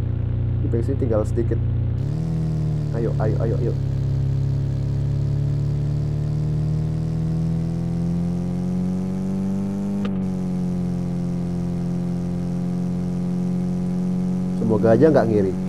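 A van engine hums steadily, its pitch slowly rising as it speeds up.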